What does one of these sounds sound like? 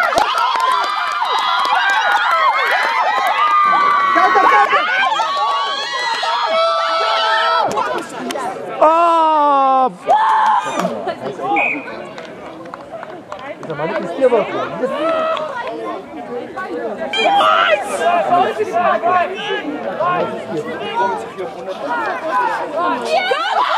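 Men shout and cheer nearby outdoors.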